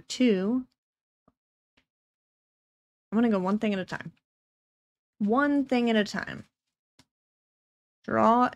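A young woman speaks calmly in short bursts over a close microphone, as on an online call.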